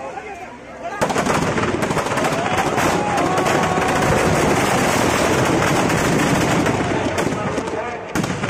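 Fireworks crackle and pop loudly in rapid bursts.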